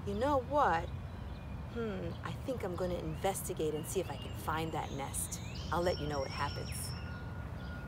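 A woman talks calmly and cheerfully close by, outdoors.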